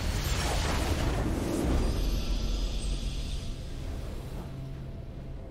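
A game's victory sound effect bursts out with a bright, shimmering whoosh and fades.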